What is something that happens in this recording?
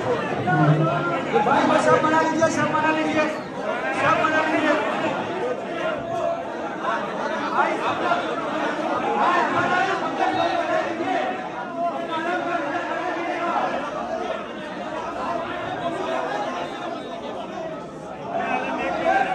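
A large crowd of men chants and shouts loudly in an echoing hall.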